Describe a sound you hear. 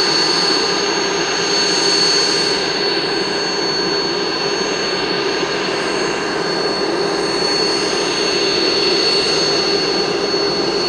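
An Alouette III helicopter idles on the ground with a high turbine whine.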